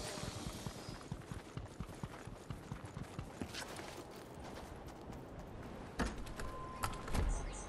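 Quick footsteps patter on the ground.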